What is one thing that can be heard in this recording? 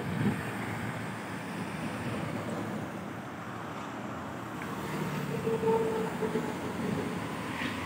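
Traffic rushes by on a road.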